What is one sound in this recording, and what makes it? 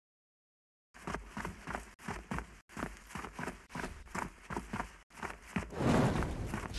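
Footsteps crunch quickly on dry ground.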